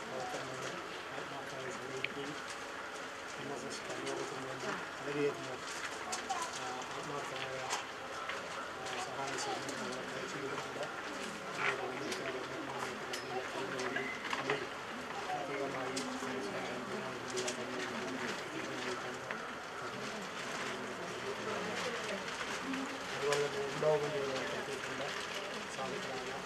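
Several men's voices murmur and chant nearby outdoors.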